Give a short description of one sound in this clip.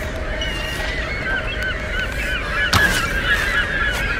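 An arrow is shot from a bow with a sharp snap.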